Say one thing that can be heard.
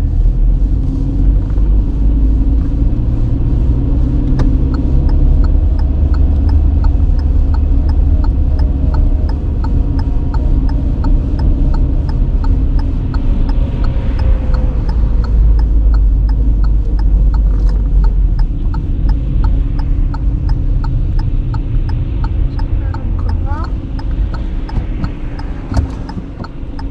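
Tyres roll on the road with a low rumble, easing off near the end.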